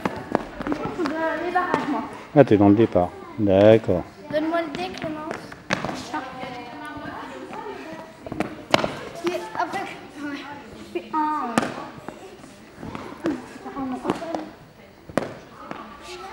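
Children talk and call out with excitement in an echoing hall.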